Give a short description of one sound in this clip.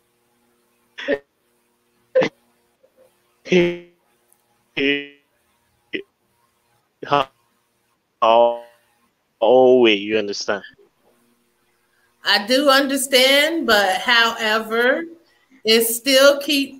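A young man talks with animation over an online call.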